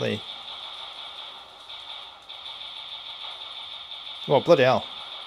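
A video game plays music and effects through a small handheld speaker.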